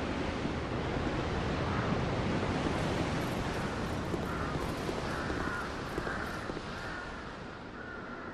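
Footsteps thud slowly on stone.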